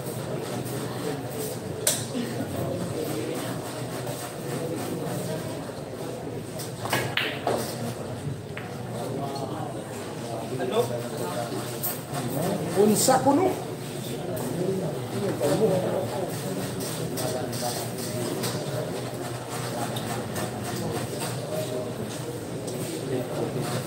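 A crowd of young men chatters nearby.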